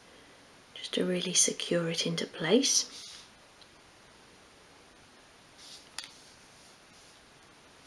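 Small metal fittings click together between fingers.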